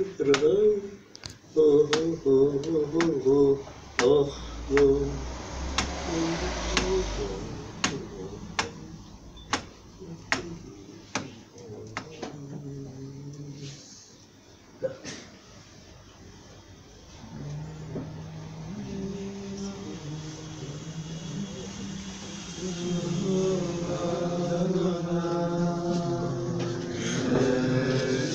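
A group of men sing a wordless melody together.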